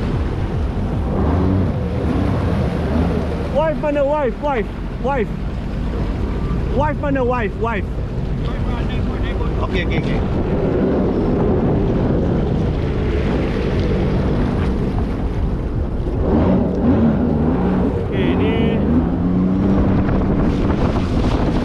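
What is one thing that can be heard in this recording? Water splashes and churns against a hull.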